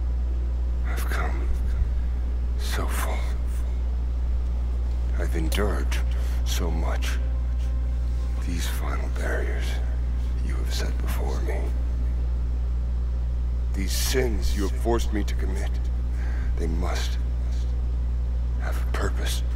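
A man prays in a low, quiet voice, with pauses.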